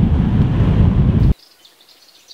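A car drives past close by on a road.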